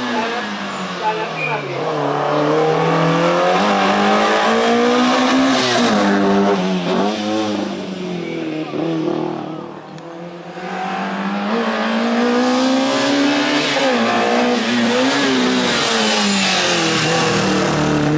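A rally car engine revs hard and roars through its gears, rising and falling in pitch.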